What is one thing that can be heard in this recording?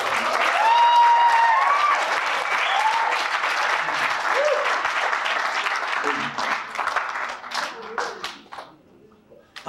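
An audience cheers and whistles loudly.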